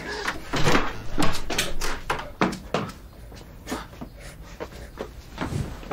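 Two men scuffle and grapple, with clothes rustling and bodies bumping.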